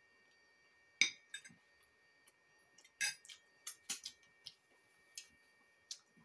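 A spoon and fork clink against a plate.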